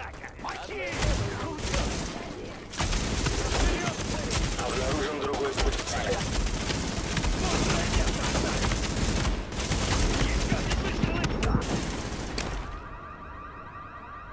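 Gunshots crack rapidly close by.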